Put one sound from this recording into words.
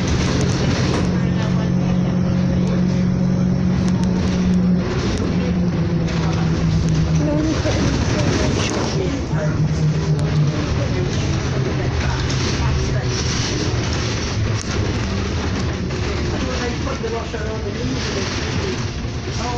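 The bus rattles and creaks over the road.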